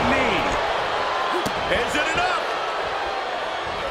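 A body slams onto a wrestling ring mat.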